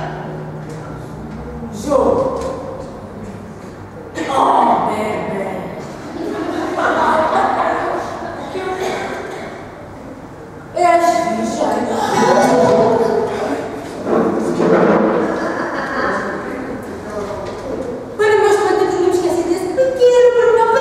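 Young women sing loudly in an echoing room.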